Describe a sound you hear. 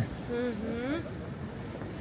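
A woman speaks briefly nearby on an outdoor street.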